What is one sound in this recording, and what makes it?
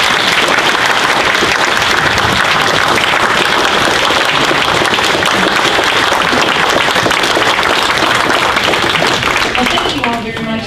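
A large crowd applauds loudly in a big room.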